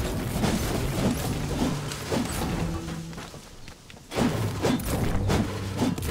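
A pickaxe strikes hard objects with dull thuds.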